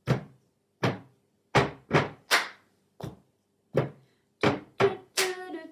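Two young women clap their hands in time.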